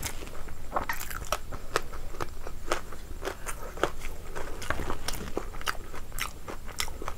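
A young woman chews food loudly and wetly close to a microphone.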